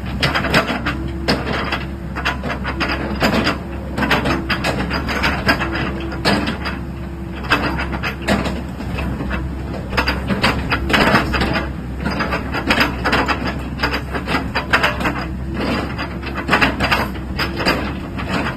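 A diesel mini excavator engine runs.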